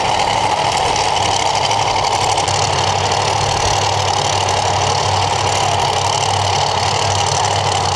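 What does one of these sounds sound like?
Drag racing engines idle with a loud, rough rumble.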